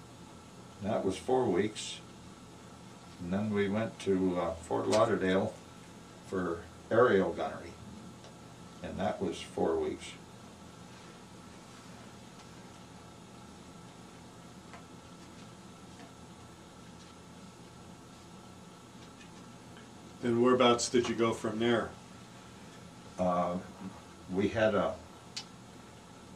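An elderly man speaks calmly and haltingly, close by, with long pauses.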